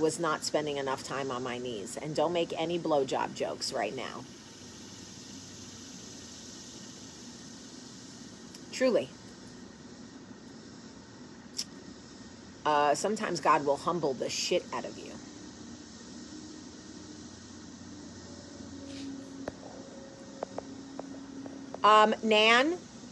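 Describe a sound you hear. A woman talks calmly and close to a microphone, with pauses.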